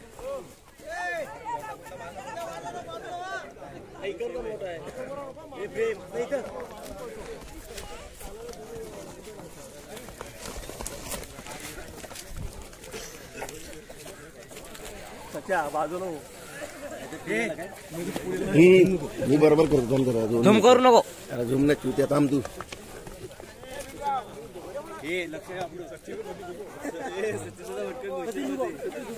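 A crowd of men shout and cheer outdoors.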